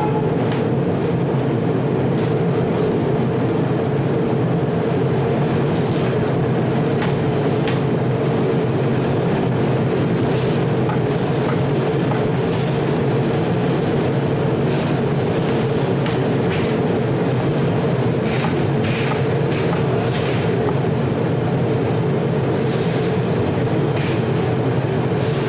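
A furnace roars steadily with flames.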